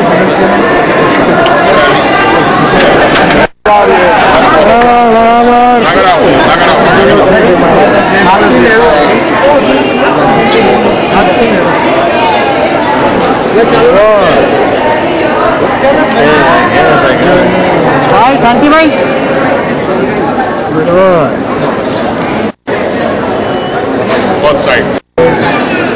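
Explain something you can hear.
A large crowd of men and women chatters loudly all around.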